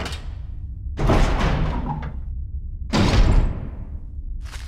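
Heavy double doors scrape and bang open.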